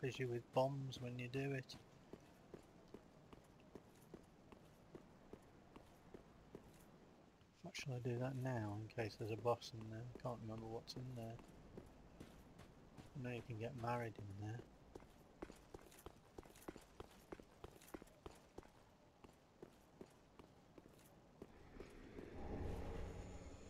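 Heavy armored footsteps run quickly over stone.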